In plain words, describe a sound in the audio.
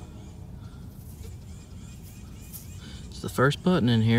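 Fingers rub soil off a small coin.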